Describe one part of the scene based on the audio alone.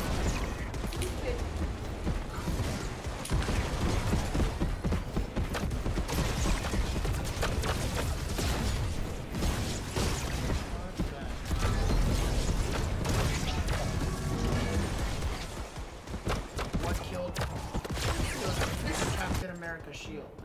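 Gunfire crackles rapidly in a game.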